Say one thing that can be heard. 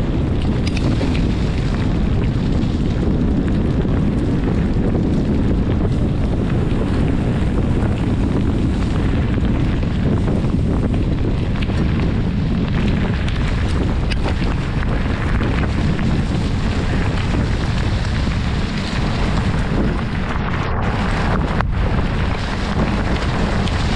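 Wind rumbles and buffets loudly against a moving microphone.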